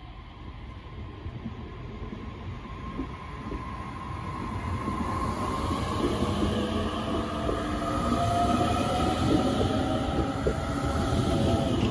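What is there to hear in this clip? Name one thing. Train wheels rumble and clatter on the rails, growing louder.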